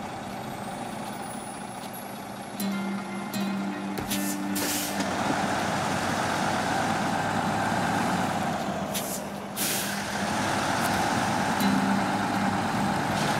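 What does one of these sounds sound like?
Truck tyres churn through snow.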